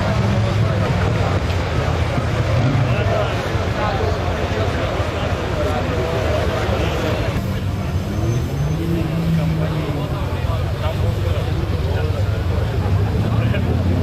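Motorcycle engines idle with a low steady rumble.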